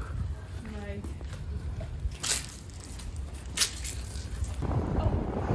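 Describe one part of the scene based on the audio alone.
Footsteps scuff on concrete pavement.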